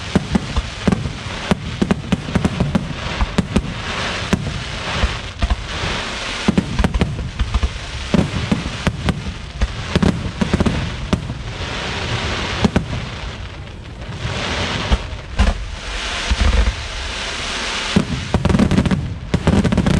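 Fireworks crackle and sizzle as sparks fall.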